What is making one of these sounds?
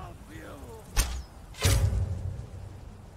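A bowstring twangs sharply as an arrow is loosed.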